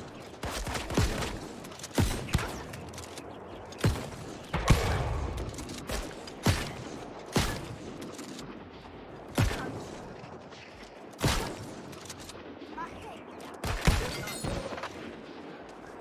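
Magic spells burst with loud whooshing blasts.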